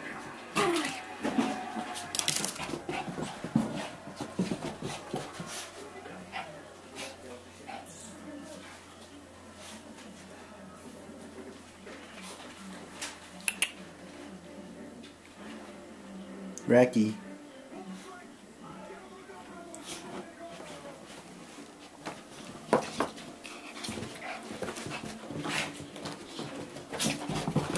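A small dog's paws patter and scuffle on a rug.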